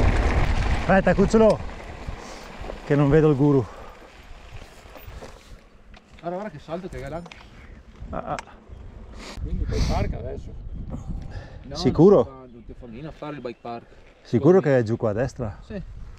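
A man talks with animation nearby, outdoors.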